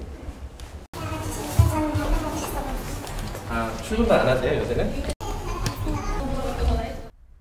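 A woman answers close by, curtly and tensely.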